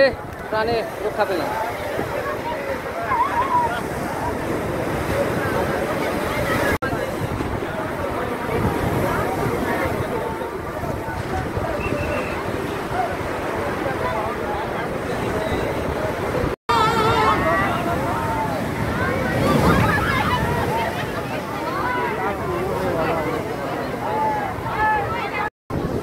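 A crowd of men and women shout excitedly close by.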